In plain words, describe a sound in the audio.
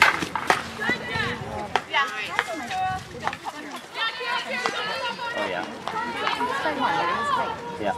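Young women shout and call out to each other across an open outdoor field.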